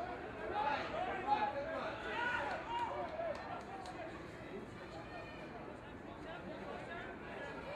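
Rugby players shout to each other across an open field.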